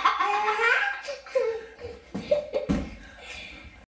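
A young boy laughs close by.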